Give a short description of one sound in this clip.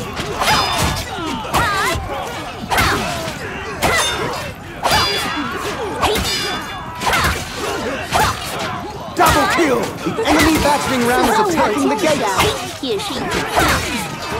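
Swords clash and clang repeatedly in a battle.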